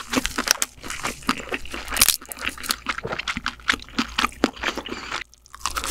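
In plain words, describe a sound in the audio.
Crab shell crackles and tears in a young woman's hands.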